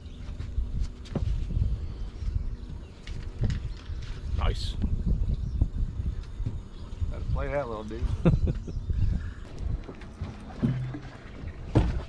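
A fishing reel clicks and whirs as a man reels in.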